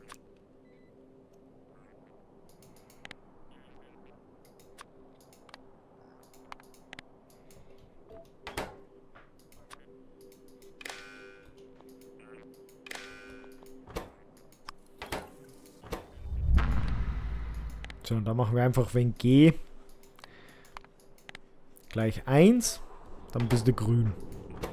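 Soft clicks sound now and then as menus open and close.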